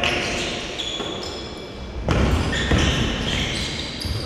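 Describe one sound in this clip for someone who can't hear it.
A basketball bounces on the floor in an echoing hall.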